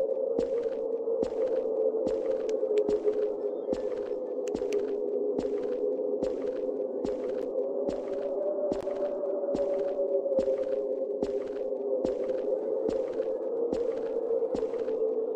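Footsteps fall at an even, steady pace.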